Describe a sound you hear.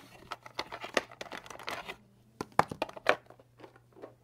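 Markers are set down on paper with light taps.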